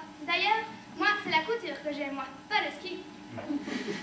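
A young woman speaks in a large hall.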